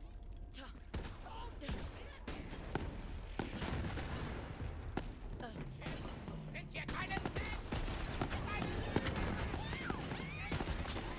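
A gun fires rapid shots with crackling impacts.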